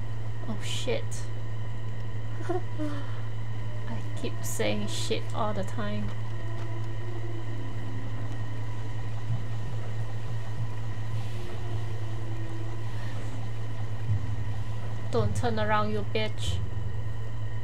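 A young woman talks close to a microphone.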